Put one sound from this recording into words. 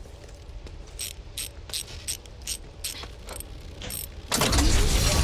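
A generator clicks and clanks as it is being repaired.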